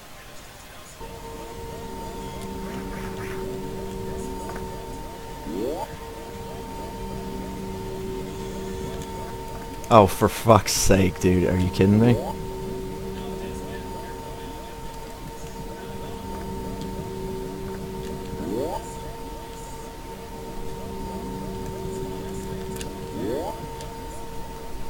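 A low electronic drone hums steadily with a thin high tone above it.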